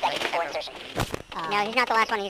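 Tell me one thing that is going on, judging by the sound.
Electronic static crackles in a short burst.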